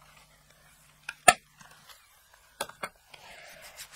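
A plastic case clicks shut.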